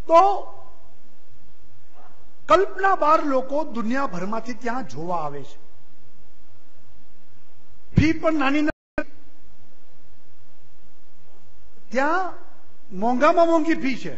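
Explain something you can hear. A man speaks forcefully into a microphone over a loudspeaker, with pauses.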